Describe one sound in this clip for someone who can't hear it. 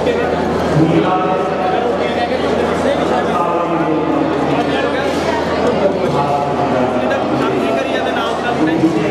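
A large crowd chatters loudly in a big echoing hall.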